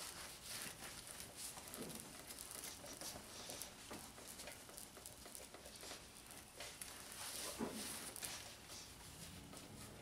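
A cloth rubs and squeaks against hard plastic.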